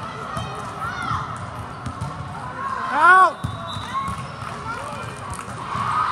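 A volleyball is hit with sharp thumps.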